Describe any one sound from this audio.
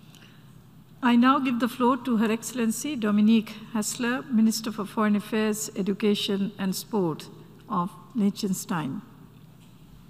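An elderly woman speaks calmly into a microphone, heard through a loudspeaker in a large hall.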